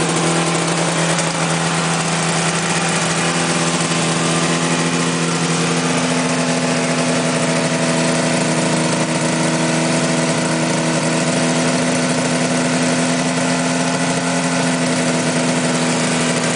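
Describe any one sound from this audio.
A small two-stroke engine idles steadily and loudly close by.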